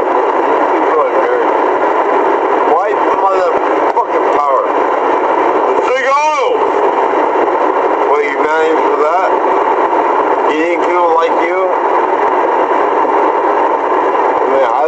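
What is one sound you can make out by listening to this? A man speaks loudly and with agitation close by.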